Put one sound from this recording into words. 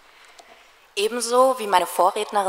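A young woman speaks into a microphone.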